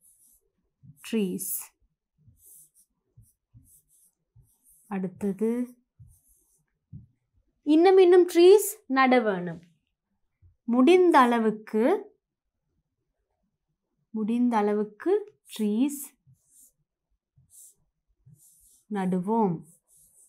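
A woman speaks calmly and clearly, in short phrases close to a microphone.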